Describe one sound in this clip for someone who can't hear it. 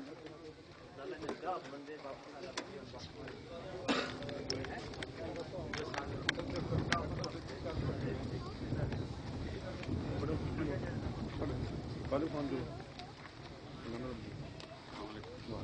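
Men greet one another with animated chatter close by.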